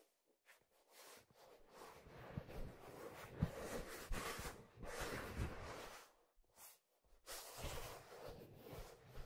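Leather rustles and creaks as it is handled close to a microphone.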